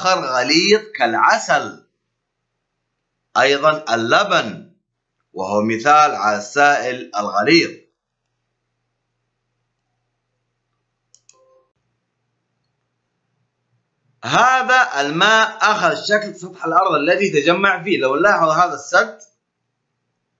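A man speaks calmly and clearly into a close microphone, explaining in pauses.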